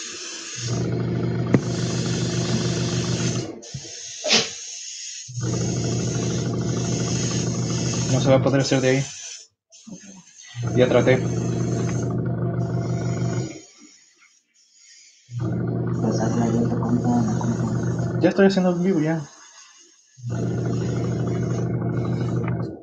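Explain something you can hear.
An airbrush sprays with a steady hiss in repeated bursts of a few seconds each.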